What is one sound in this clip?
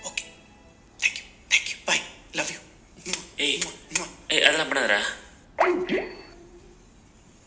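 A man speaks with animation through a small loudspeaker.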